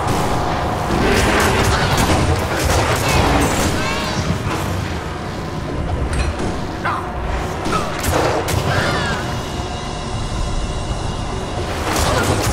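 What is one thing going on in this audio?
Fiery spells burst and crackle in a fight.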